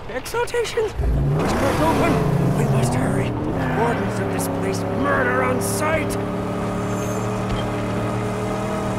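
A car engine revs and drones steadily.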